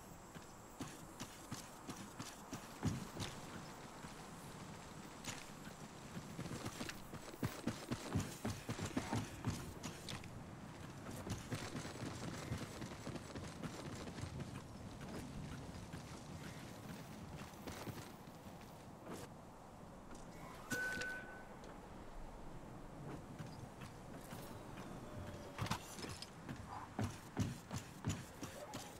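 Footsteps patter quickly as a game character runs.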